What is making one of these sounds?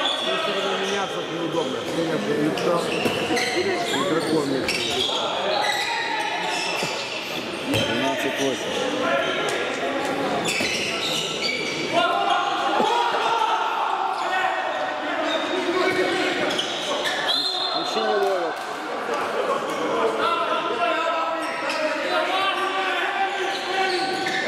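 Men shout to each other across an echoing hall.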